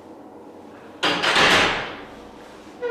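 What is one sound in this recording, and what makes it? A barbell clanks down onto a metal rack.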